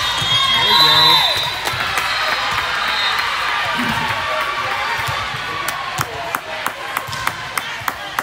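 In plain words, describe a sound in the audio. Spectators clap and cheer after a point.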